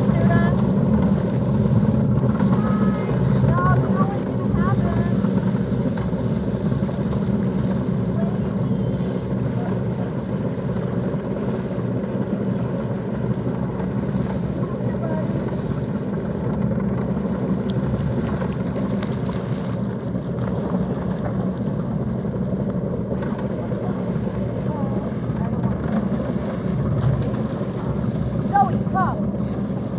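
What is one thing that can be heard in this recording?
Water laps and splashes around wading dogs.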